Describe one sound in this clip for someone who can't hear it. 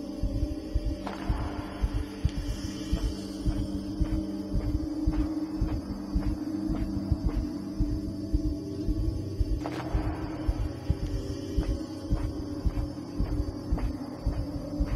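Many footsteps march in step through a large echoing hall.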